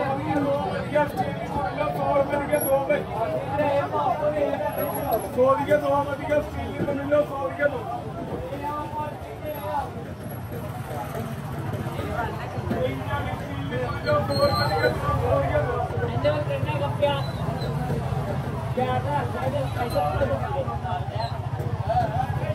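Many voices of men and women chatter and murmur all around.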